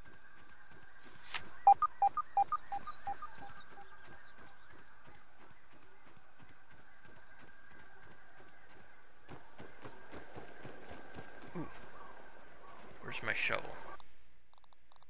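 Footsteps tread steadily over soft ground.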